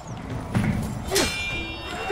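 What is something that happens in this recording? Steel swords clash and ring.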